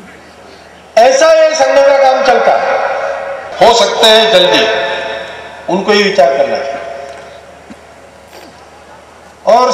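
An elderly man speaks forcefully into a microphone over a loudspeaker, his voice echoing outdoors.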